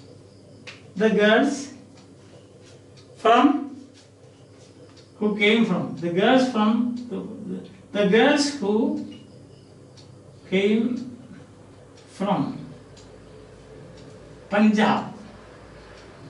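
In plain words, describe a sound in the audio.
A man speaks slowly and clearly in short phrases, close by.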